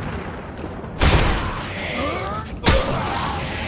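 A weapon fires with a loud electric crackle.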